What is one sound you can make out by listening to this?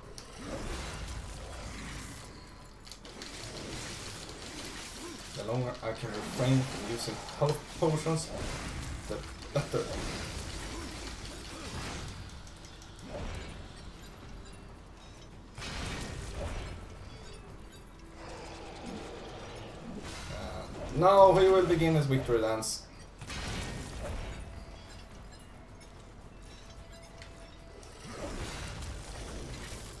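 Metal blades slash and strike with sharp impacts.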